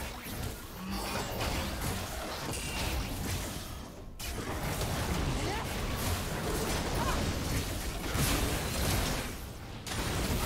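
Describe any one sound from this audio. Magic spells whoosh and crackle in a fast game fight.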